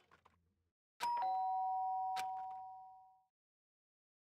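A short electronic chime rings out and slowly fades.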